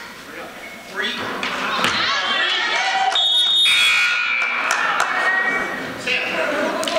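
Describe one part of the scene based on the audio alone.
A crowd of spectators cheers and shouts.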